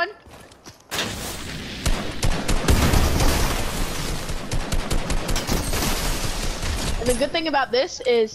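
Rapid gunfire rattles loudly and close by.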